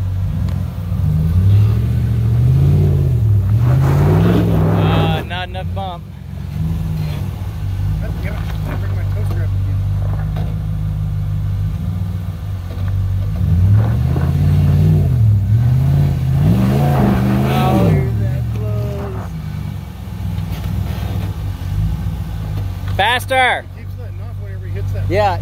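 A truck engine rumbles nearby, its revs rising and falling in swells.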